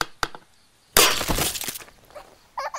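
An egg bursts with a wet splash.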